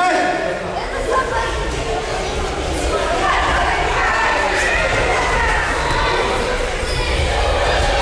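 Bare feet thud and shuffle on mats as a group runs and grapples.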